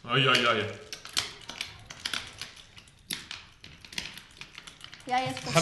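Small plastic game pieces click and knock against a hard table top.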